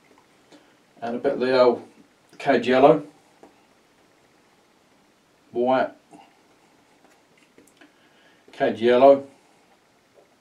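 A middle-aged man speaks calmly and closely into a microphone, in short phrases.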